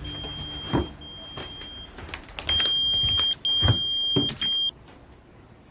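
A pager beeps repeatedly with a shrill tone.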